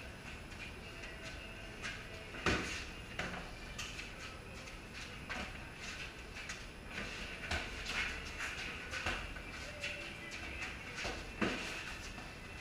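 Sneakers squeak and shuffle on a concrete floor.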